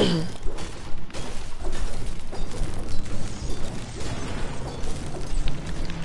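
A pickaxe strikes wood with repeated knocks.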